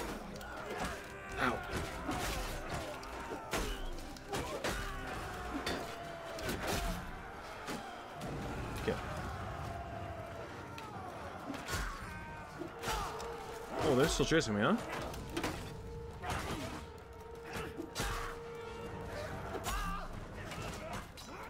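Swords clash and strike armour with sharp metallic clangs.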